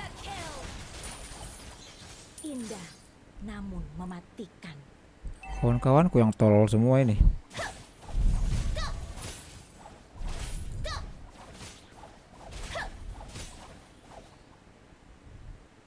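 A young man talks with animation into a close microphone, at times shouting.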